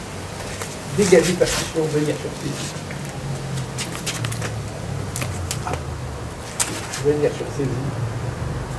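A man speaks briefly with effort, close by.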